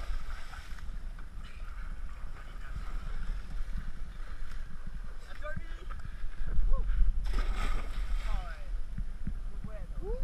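Water splashes as people jump into the sea.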